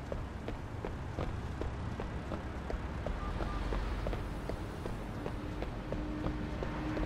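Footsteps run quickly on hard steps.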